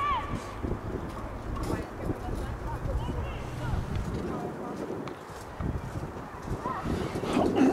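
Wind rumbles across the open air.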